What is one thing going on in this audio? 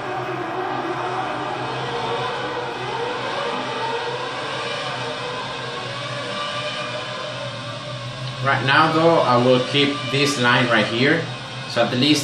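A racing car engine whines loudly, rising in pitch as it speeds up and shifts gears.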